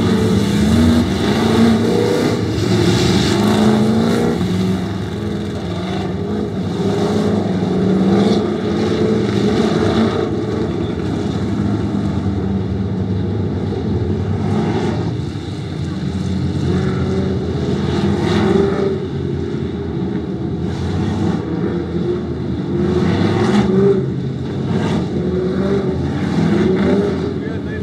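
Race car engines roar and rev as cars race around a dirt track.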